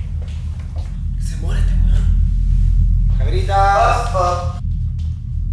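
A young man talks with animation nearby.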